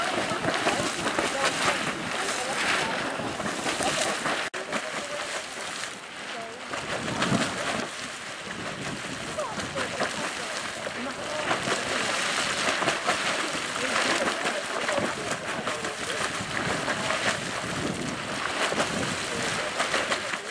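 Hot spring water splashes and gurgles as a small geyser spurts in bursts.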